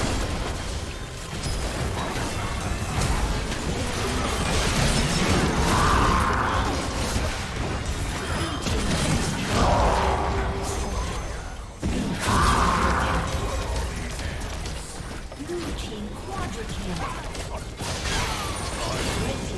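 Game spells and attacks crash and blast in quick succession.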